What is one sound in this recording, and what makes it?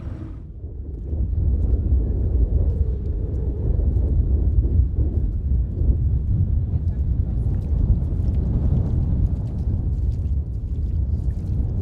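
Wind buffets outdoors with a low, steady rumble.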